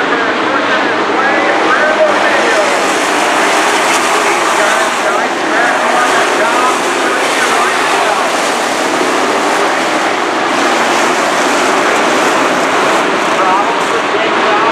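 Several race car engines roar loudly nearby, outdoors.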